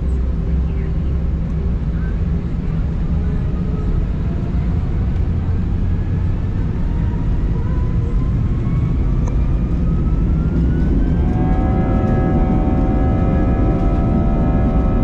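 Aircraft wheels rumble over the taxiway.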